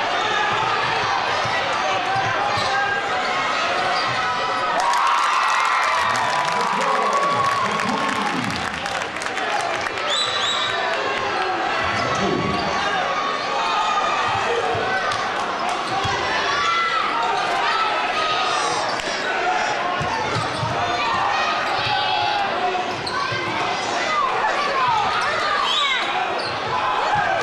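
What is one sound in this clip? A large crowd cheers and chatters, echoing through a big hall.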